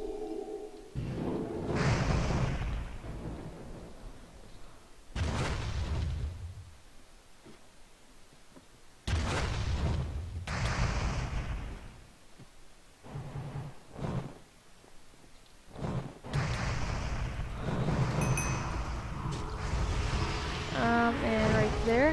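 Flames burst and roar in short rushes.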